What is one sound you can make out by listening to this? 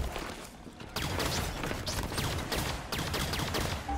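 A rapid energy weapon fires in bursts.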